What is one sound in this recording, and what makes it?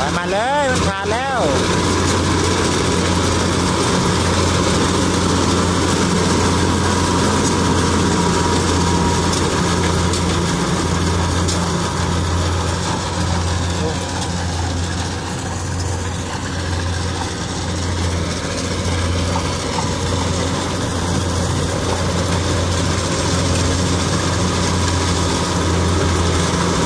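Crop stalks rustle and crunch as a combine harvester cuts through them.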